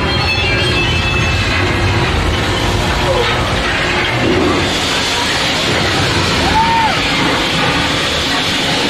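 A ride vehicle rumbles steadily along a track.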